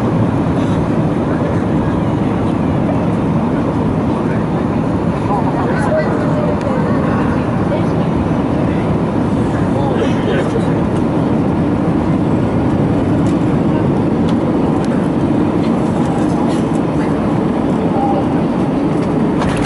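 A jet engine roars steadily inside a plane's cabin.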